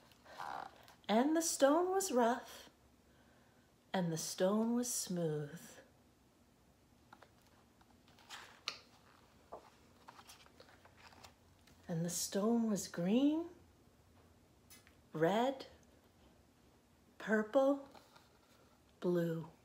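A woman reads aloud expressively, close by.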